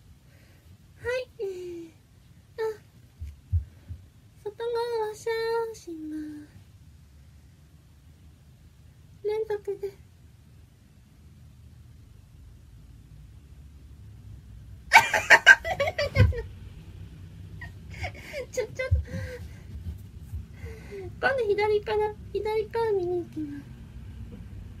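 A young woman speaks softly and playfully close by.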